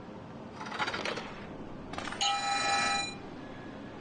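A heavy lever clunks down.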